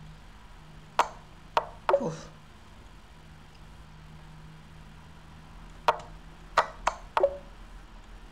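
Sharp clicks sound as chess moves are played.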